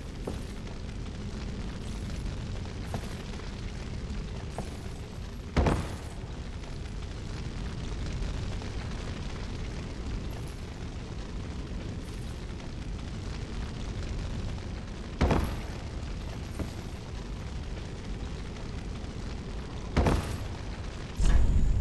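Armoured footsteps clank on wooden planks.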